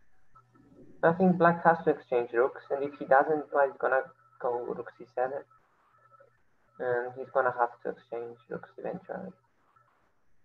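A young man talks with animation through an online call.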